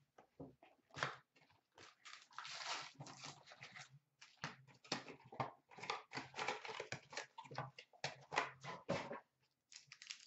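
Cardboard packaging rustles and tears as it is opened.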